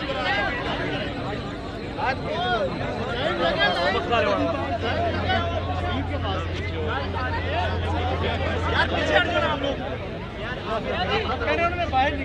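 A large crowd of men shouts and chants excitedly close by.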